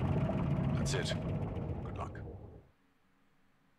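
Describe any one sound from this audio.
A game vehicle's engine hums low and fades out.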